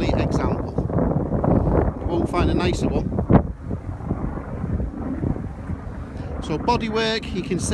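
Wind buffets the microphone outdoors with a low, steady rumble.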